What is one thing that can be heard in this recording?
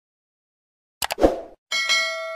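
A mouse click sounds.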